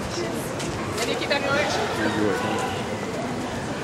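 Passers-by chatter on a busy pavement.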